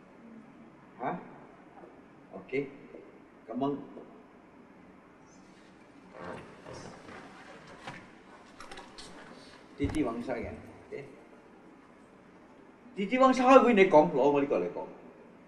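An older man speaks calmly nearby, in short bursts.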